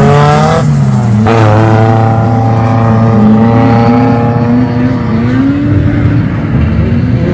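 Tyres squeal on wet tarmac.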